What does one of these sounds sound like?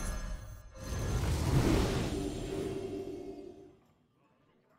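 Fiery magical bursts whoosh and crackle loudly.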